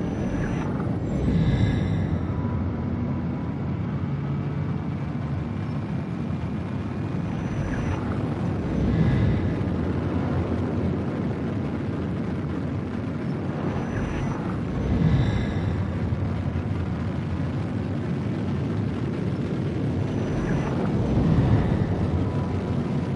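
Whooshing swells rise and fade every few seconds.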